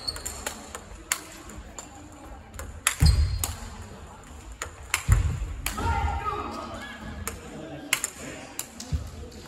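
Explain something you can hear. A table tennis ball clicks sharply back and forth on paddles and a table.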